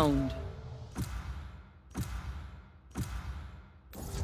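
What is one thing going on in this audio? A countdown ticks once every second.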